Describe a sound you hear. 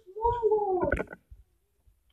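A dog whines from a game's speaker.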